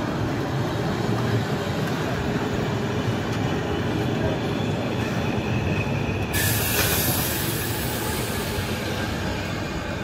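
A train rumbles and clatters past on the rails.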